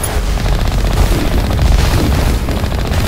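An explosion booms with a crackling roar.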